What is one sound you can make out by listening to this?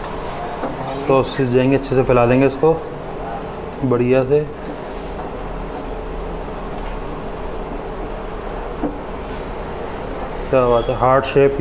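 A metal spoon scrapes softly as it spreads sauce across dough.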